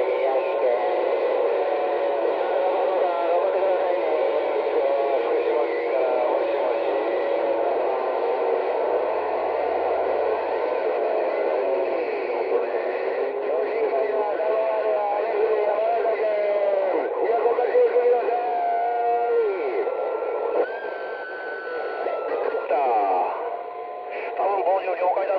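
A radio receiver plays a garbled, warbling transmission over steady static hiss.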